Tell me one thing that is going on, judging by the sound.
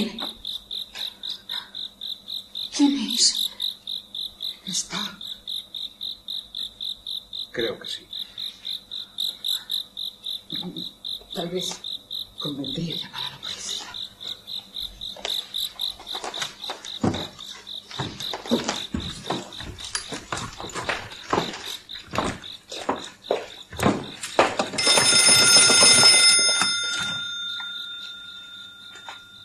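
A woman speaks softly and anxiously.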